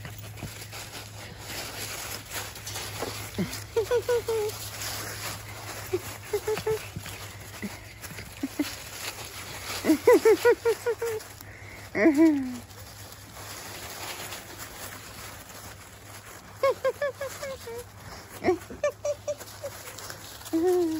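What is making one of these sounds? Dry leaves rustle under small paws.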